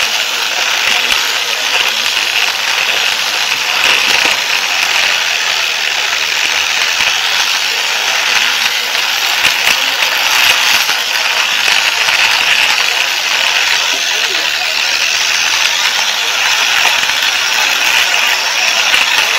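A toy train rattles and whirs steadily along plastic track close by.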